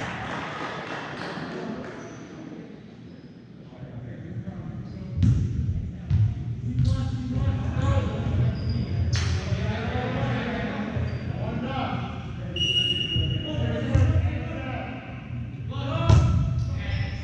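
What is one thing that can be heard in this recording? A volleyball is struck with sharp smacks in a large echoing gym.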